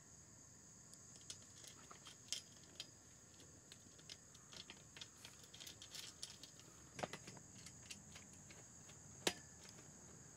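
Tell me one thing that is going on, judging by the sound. A metal clamp clicks and rattles against a plastic pole.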